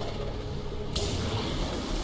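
Electricity crackles and buzzes sharply.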